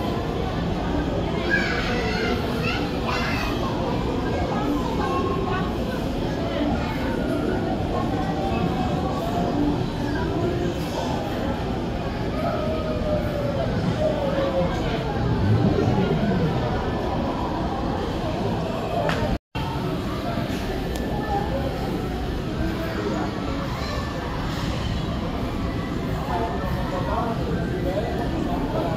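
A steady murmur of voices echoes in a large room.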